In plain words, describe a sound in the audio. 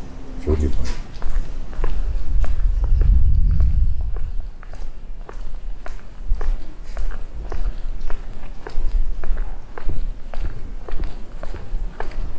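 Footsteps tap steadily on pavement at a walking pace.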